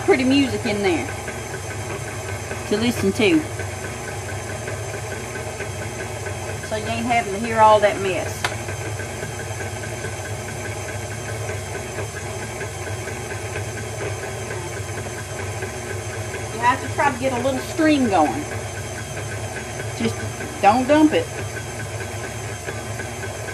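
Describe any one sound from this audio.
A stand mixer whirs steadily as its whisk beats in a metal bowl.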